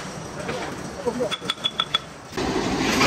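A hammer strikes metal in quick, ringing blows.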